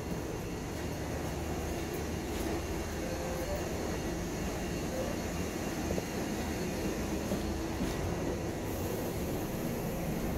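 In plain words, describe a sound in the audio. A bus engine rumbles steadily while the bus rides along.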